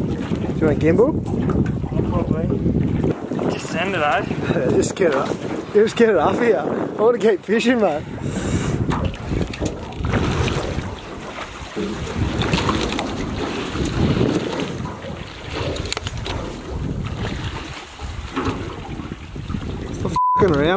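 Wind blows and waves slap against a boat.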